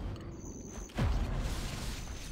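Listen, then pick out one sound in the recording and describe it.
A magical whoosh sweeps down.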